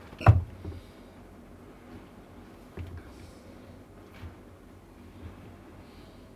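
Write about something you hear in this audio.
A knife cuts into a watermelon.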